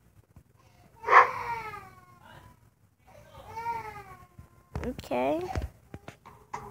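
A cat meows several times.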